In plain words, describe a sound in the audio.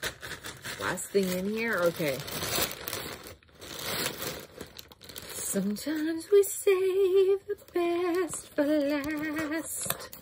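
A woman speaks close to a microphone in a lively, sing-song way.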